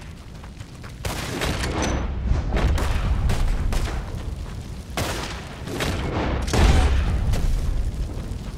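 Gunshots fire loudly.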